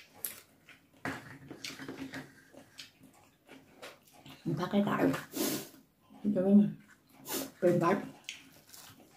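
Food wrappers crinkle and rustle in hands.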